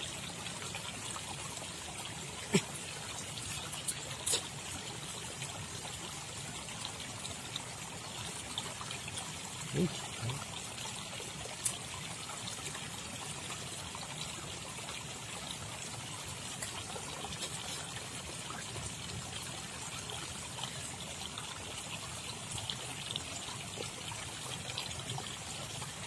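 Water flows gently in a calm river outdoors.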